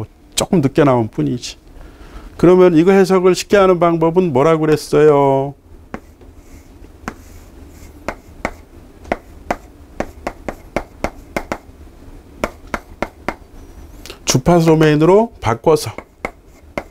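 A middle-aged man speaks calmly through a clip-on microphone.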